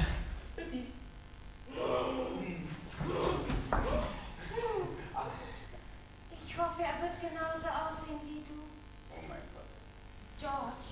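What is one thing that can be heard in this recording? A woman speaks with emotion from a distance, her voice rising and falling.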